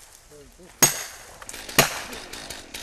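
An axe chops into a tree trunk with sharp blows.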